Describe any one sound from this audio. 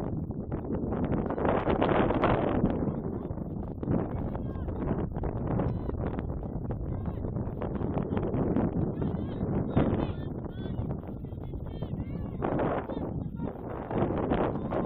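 Young women call out to each other in the distance across an open outdoor field.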